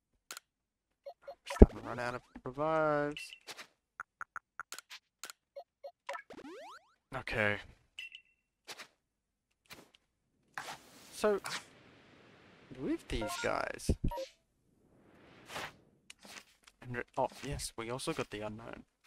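A game's menu makes short electronic blips and chimes as selections are made.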